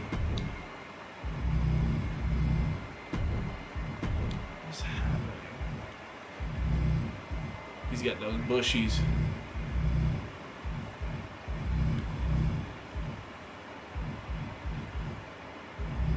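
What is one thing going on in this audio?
A man talks in a low voice close to a microphone.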